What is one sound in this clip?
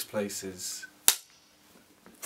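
A clapperboard snaps shut with a sharp clack.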